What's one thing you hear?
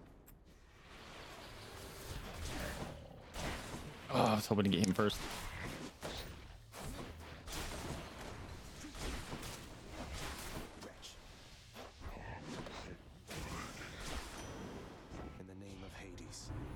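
Weapon hits and magic blasts crackle and thud in quick bursts.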